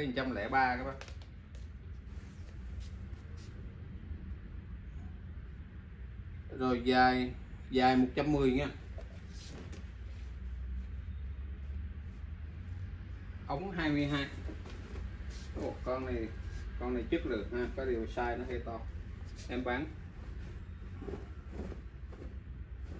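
Heavy cotton clothing rustles as it is handled.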